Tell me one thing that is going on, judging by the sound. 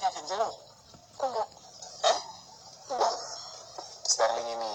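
A boy talks brightly nearby.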